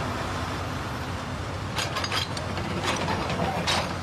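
A backhoe engine rumbles steadily.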